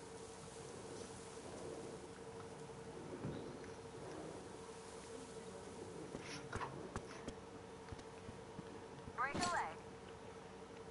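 A man talks calmly into a headset microphone.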